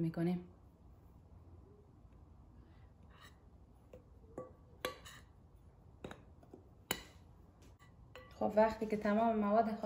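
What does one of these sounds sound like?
A metal spoon scrapes and taps against a glass bowl.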